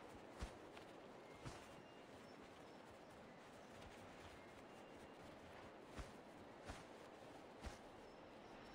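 A bird's wings flap in the air.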